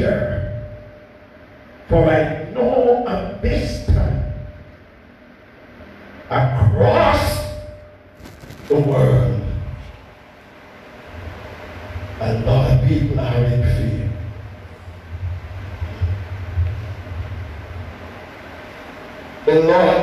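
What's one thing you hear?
An elderly man preaches loudly through a microphone and loudspeakers, in bursts with pauses, in an echoing hall.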